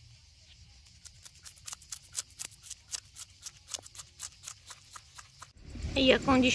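A knife scrapes scales off a fish in quick, rhythmic strokes.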